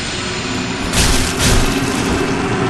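Metal clangs sharply as a weapon strikes a shield.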